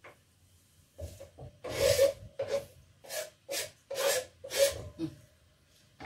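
Chopped greens are scraped off a board into a metal pot.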